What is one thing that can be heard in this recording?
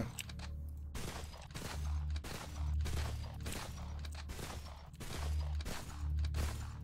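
Gunshots fire in quick repeated bursts.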